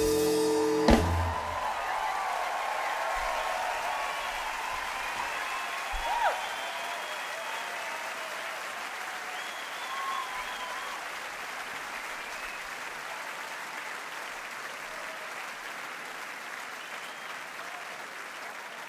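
A large crowd cheers and applauds in a big hall.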